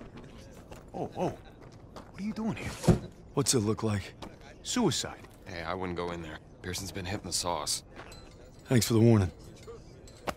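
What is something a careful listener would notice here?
A young man asks and talks calmly nearby.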